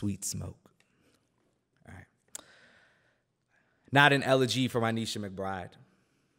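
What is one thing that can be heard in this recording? A man reads out calmly into a close microphone, with pauses.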